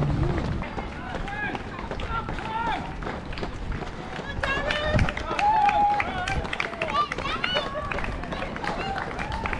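Spectators along the road cheer and shout encouragement.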